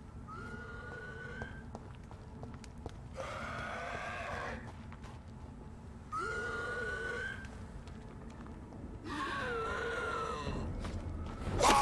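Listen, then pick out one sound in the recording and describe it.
Footsteps run over wet cobblestones.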